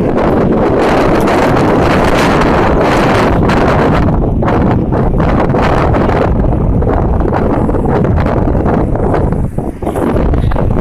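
Strong wind buffets the microphone outdoors.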